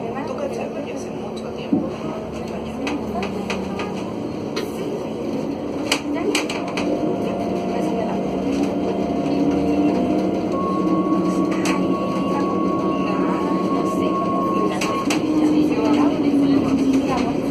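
A bus engine hums steadily while driving through traffic.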